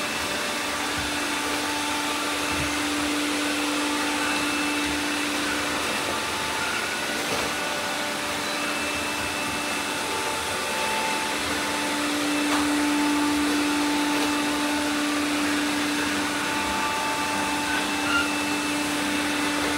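Robot vacuum cleaners hum and whir steadily.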